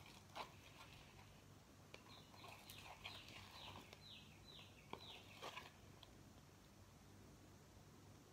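Liquid pours from a plastic jug into a cup.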